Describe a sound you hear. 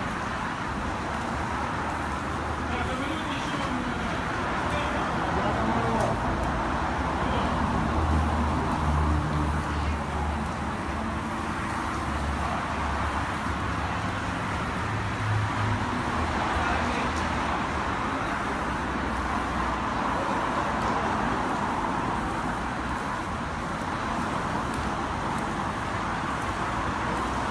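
Footsteps scuff on stone paving.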